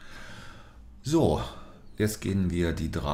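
An older man speaks calmly into a nearby microphone.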